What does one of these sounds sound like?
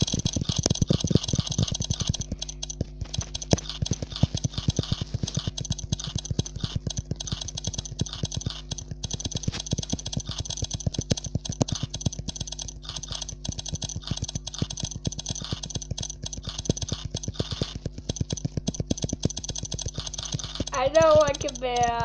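Rapid, crisp clicking pops sound over and over from a game.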